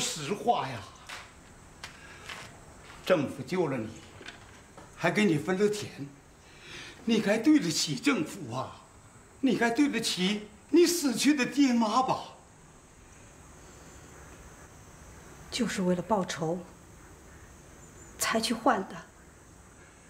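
An elderly man speaks sternly and insistently, close by.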